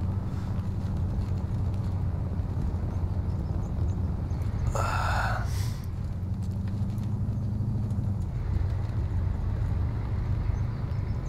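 Tyres roll over a dirt road.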